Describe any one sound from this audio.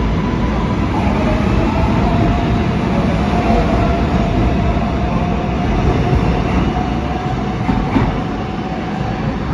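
Train wheels squeal in a long steady whine.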